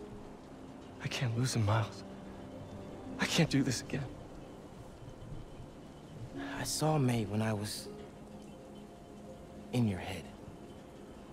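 A young man speaks in short bursts into a close microphone.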